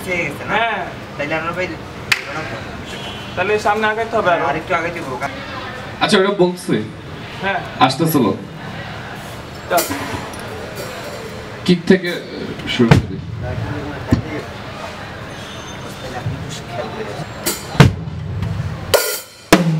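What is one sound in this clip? A drummer hits drums and cymbals in short, scattered bursts.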